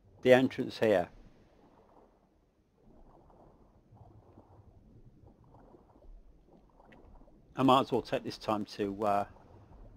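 Water swishes and bubbles softly as arms stroke underwater.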